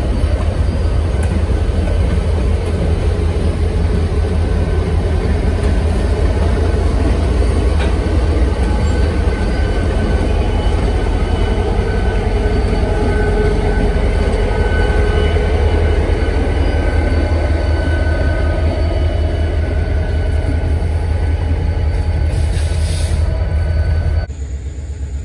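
Diesel locomotive engines rumble loudly close by as a train passes.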